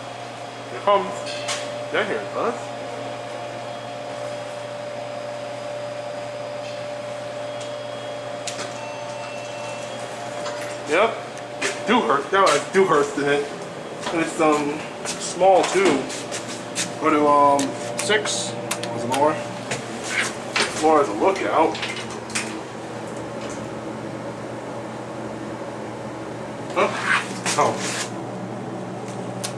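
An elevator hums steadily.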